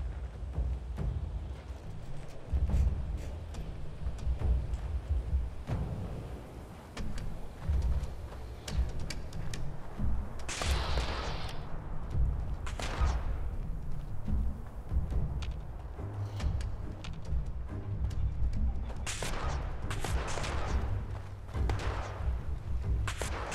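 Footsteps crunch over gravel and rubble.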